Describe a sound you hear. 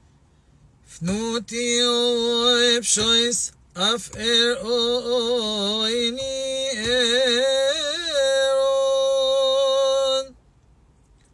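A middle-aged man sings loudly close by, ending on a long held note.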